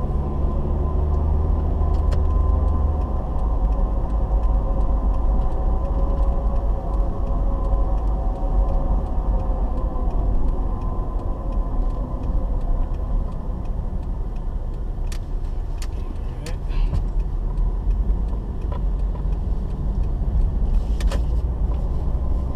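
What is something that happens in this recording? Tyres rumble on a paved road.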